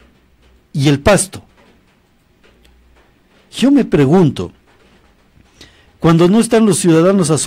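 A middle-aged man speaks calmly and closely into a microphone, in short bursts.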